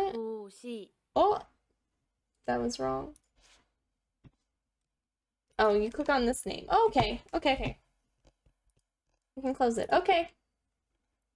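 A young woman speaks calmly and clearly, close to a microphone, in short phrases with pauses.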